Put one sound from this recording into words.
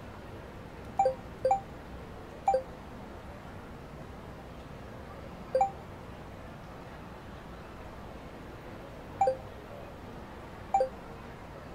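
Short two-note message chimes sound several times.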